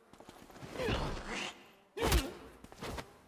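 A blade stabs into a body with a heavy, wet thud.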